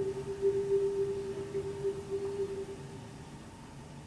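A marimba note rings and slowly fades away.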